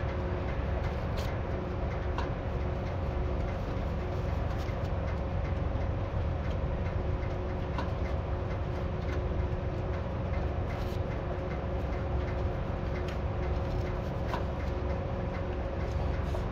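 Disc harrow blades churn through soil with scraping and clattering.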